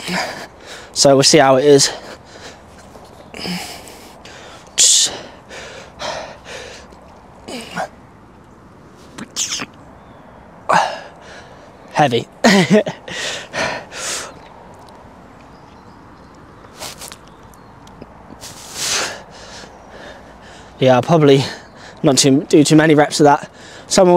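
A young man talks close by, in bursts.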